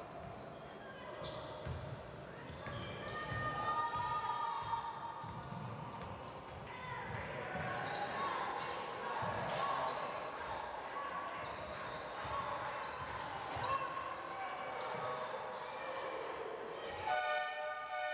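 A crowd cheers and chatters loudly in an echoing hall.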